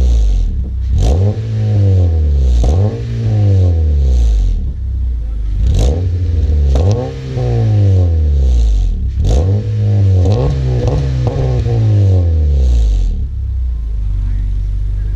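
A car engine revs up hard again and again, its exhaust roaring loudly close by, then settles to a low idle.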